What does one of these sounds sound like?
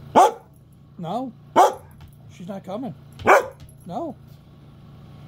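A dog whines and yelps in a high, wavering pitch.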